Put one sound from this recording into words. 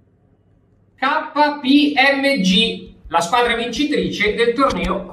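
A young man speaks clearly and calmly, close to a microphone.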